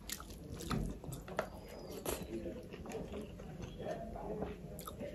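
Fingers squelch and mix rice on a plate.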